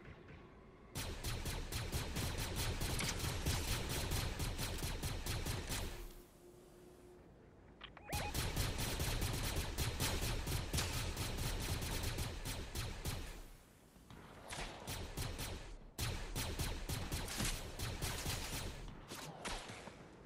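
A rifle fires in rapid bursts of loud cracks.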